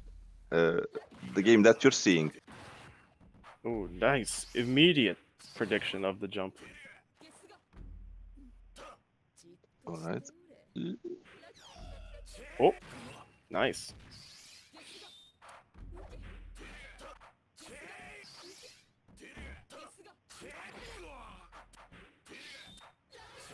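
Swords clash and slash with sharp metallic strikes.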